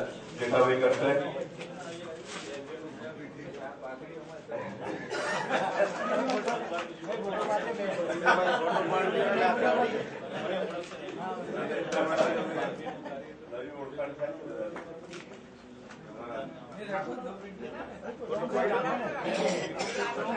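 Several men talk over one another indoors.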